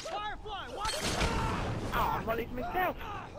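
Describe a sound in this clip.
A firebomb bursts into roaring flames.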